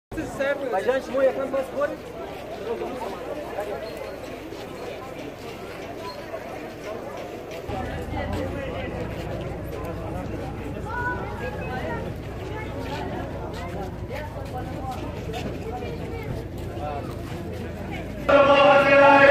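A crowd of men chants together outdoors.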